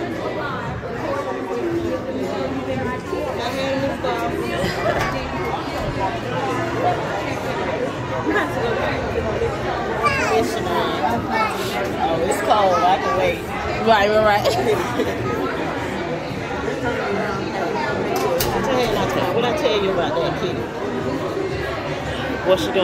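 A crowd of men and women chatter throughout a large, echoing hall.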